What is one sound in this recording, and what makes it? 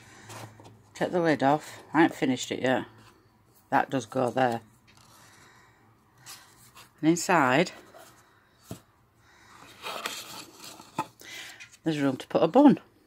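Cardboard rustles and taps softly as it is handled.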